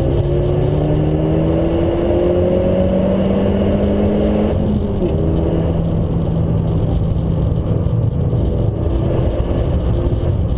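A car engine revs hard and rises in pitch as it accelerates.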